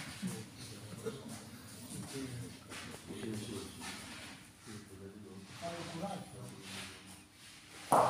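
Elderly men talk casually nearby in a large echoing hall.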